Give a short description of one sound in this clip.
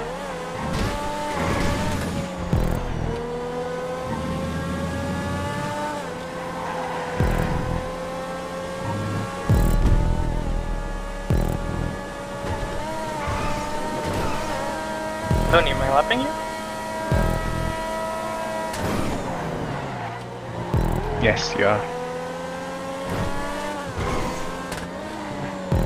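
A racing car engine whines at high revs, rising and dropping in pitch as it shifts gears.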